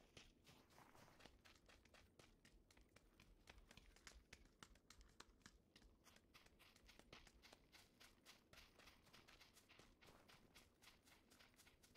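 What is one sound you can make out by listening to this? Quick footsteps run over hard ground and grass.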